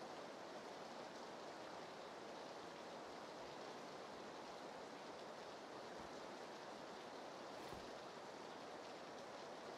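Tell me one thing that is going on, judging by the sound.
Footsteps thud on a staircase.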